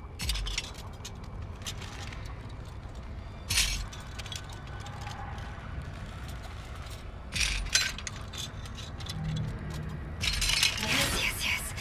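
Metal parts click and clank as they are fiddled with.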